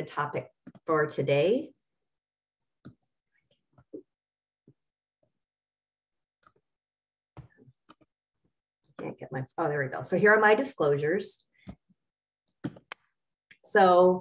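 A middle-aged woman speaks calmly over an online call, pausing now and then.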